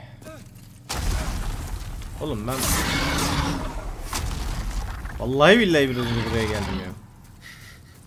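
A loud rumbling explosion bursts with debris crashing.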